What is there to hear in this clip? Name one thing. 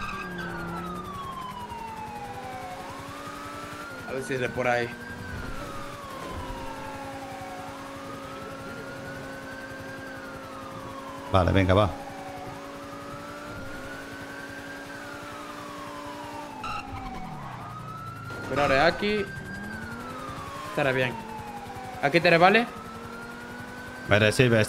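A car engine revs up and shifts gears over and over.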